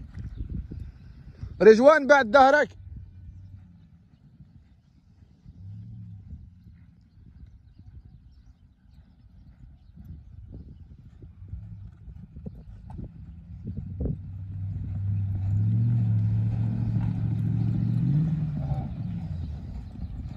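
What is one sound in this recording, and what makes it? Horses gallop with muffled hoofbeats on soft sand.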